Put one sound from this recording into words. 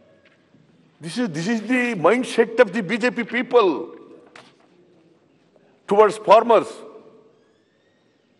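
An elderly man speaks animatedly through a microphone.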